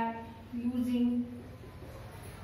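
A woman speaks aloud nearby in a short, drawn-out phrase.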